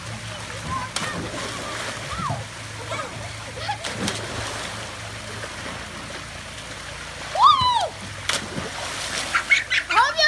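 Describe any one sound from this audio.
A person splashes into the water from a slide.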